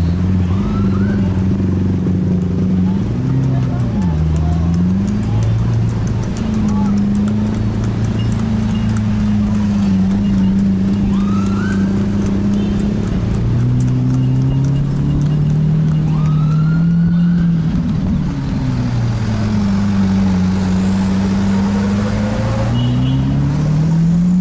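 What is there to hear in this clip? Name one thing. Traffic rumbles by outside on a busy road.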